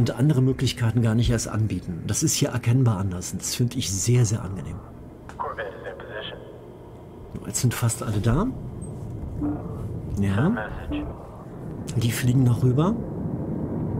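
A middle-aged man talks casually into a microphone, close by.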